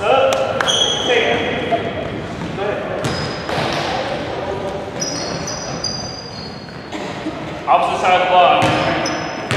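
A basketball bounces with hollow thuds.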